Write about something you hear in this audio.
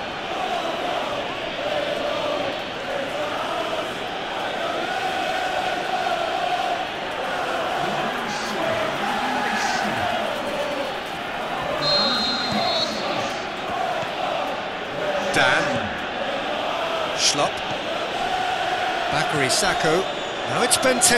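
A large crowd roars and chants steadily in a big stadium.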